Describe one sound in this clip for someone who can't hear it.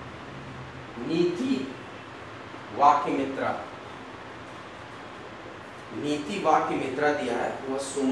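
A man speaks nearby in short bursts.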